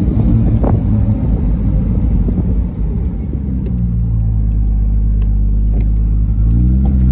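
Wind rushes past an open car.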